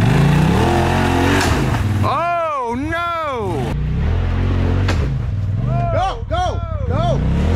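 Tyres grind and crunch over rocks.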